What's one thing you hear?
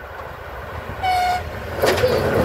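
A train horn sounds briefly.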